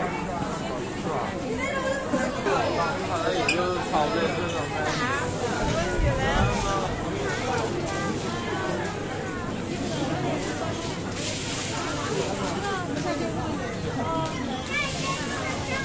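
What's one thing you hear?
A dense crowd of men and women chatters all around, close by.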